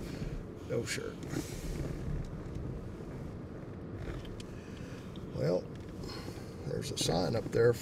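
A car engine hums low and steady from inside the car.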